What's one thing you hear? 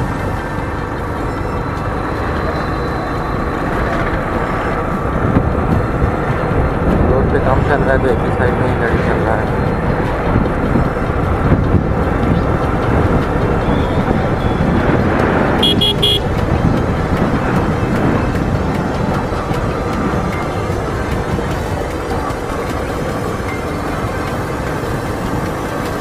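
Wind rumbles against the vehicle.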